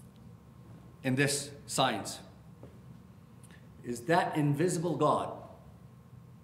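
A middle-aged man speaks emphatically into a microphone, in short bursts with pauses.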